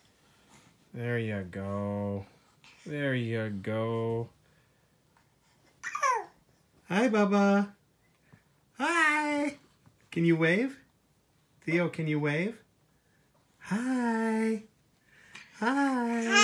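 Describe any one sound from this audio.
A toddler squeals and babbles loudly up close, in short bursts.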